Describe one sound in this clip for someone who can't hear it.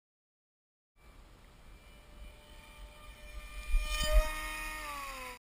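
An electric motor whines steadily, then slowly drops in pitch.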